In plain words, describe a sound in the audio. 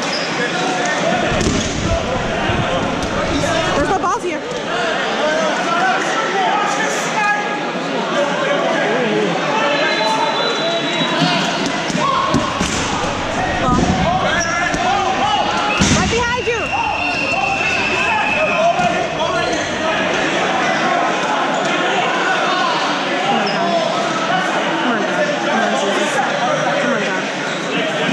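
A crowd of players shouts and chatters in a large echoing hall.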